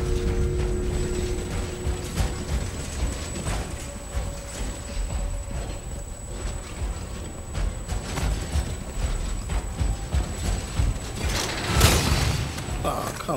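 Footsteps thud on a hard stone floor.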